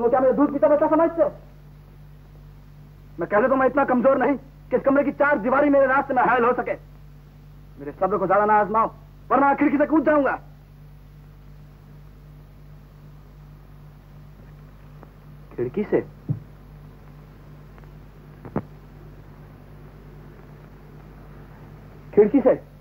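A man speaks dramatically and with passion, heard through an old, hissy soundtrack.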